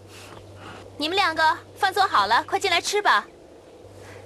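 A young woman calls out brightly from a distance.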